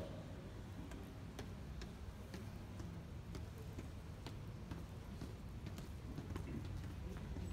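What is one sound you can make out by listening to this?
Footsteps scuff down stone stairs.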